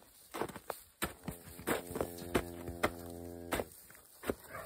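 A calf moos loudly nearby.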